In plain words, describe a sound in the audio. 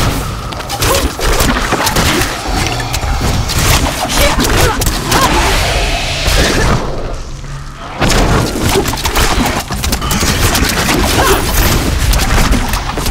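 Spells burst and crackle with fiery blasts.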